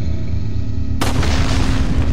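A pistol fires a single sharp shot.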